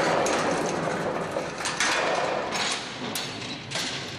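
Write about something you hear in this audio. A metal lift gate rattles and clanks open.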